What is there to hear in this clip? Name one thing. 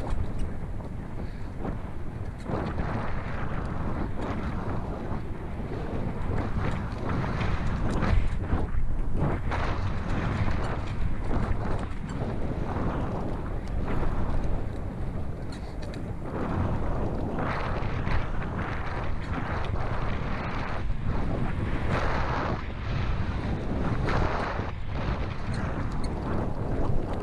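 Wind rushes over a moving microphone.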